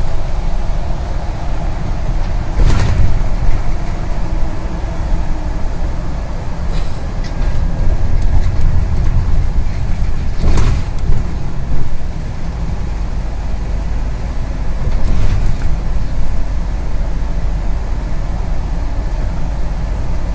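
A bus engine hums steadily as it drives.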